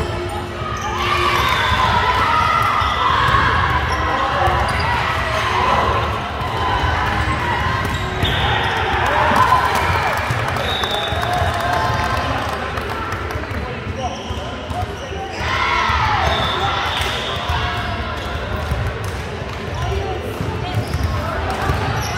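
Shoes squeak on a wooden court.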